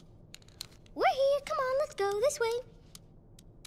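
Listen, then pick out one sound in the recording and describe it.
A young girl calls out excitedly, close by.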